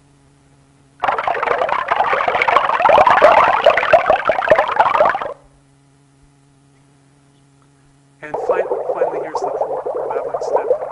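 Water pours from a tap and splashes into a container.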